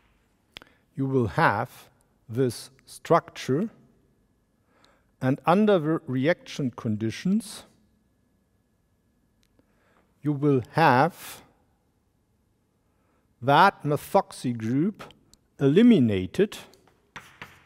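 A middle-aged man lectures calmly through a microphone in an echoing hall.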